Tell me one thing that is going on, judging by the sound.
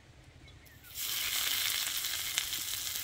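Shredded cabbage sizzles loudly in hot oil.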